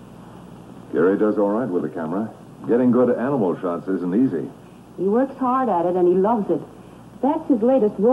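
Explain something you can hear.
A man talks with animation, close by.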